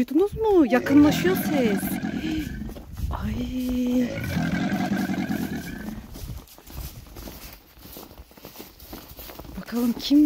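Footsteps crunch on snow and dry leaves.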